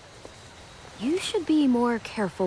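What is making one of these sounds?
A young girl speaks calmly and quietly.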